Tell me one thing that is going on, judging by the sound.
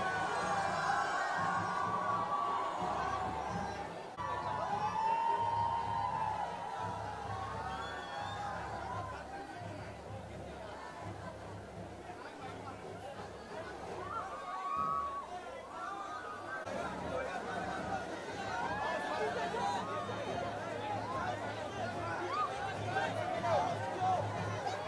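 A large crowd chatters and shouts excitedly all around, echoing in a large hall.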